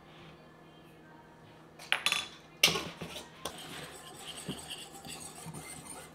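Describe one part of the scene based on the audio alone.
A spatula scrapes and stirs in a bowl.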